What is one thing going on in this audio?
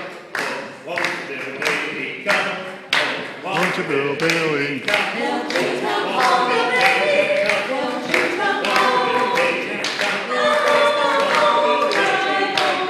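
A small group of men and women sing together into a microphone.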